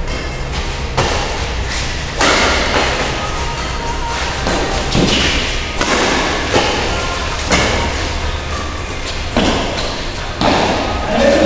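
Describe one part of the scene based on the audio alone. Shuttlecocks are hit sharply with rackets, with the sound echoing through a large hall.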